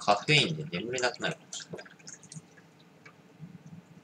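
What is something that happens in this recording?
Beer pours from a can into a glass and fizzes.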